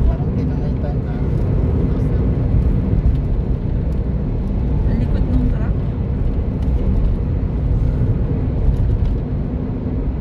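Tyres roll on a highway at speed.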